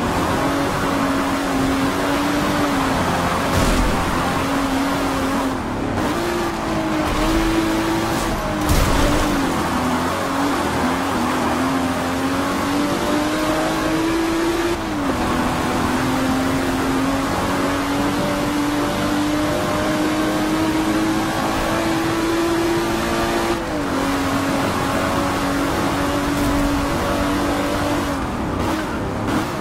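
A racing car engine roars steadily, rising in pitch as it speeds up and dropping at each gear change.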